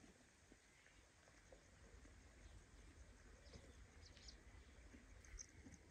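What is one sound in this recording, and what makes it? A horse tears and chews grass.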